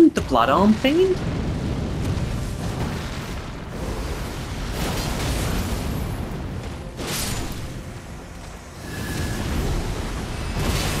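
Flames roar and crackle in bursts.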